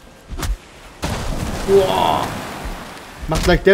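A tree creaks and crashes to the ground.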